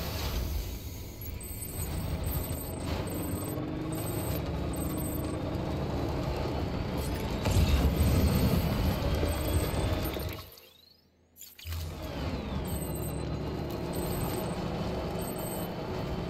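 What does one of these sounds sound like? A truck engine rumbles as the vehicle drives.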